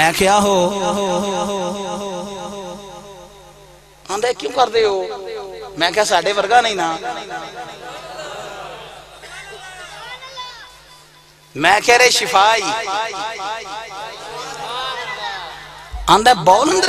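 A man chants and speaks with feeling into a microphone, heard through loudspeakers in a reverberant space.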